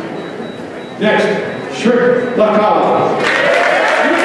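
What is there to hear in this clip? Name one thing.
A man announces over a loudspeaker in a large echoing hall.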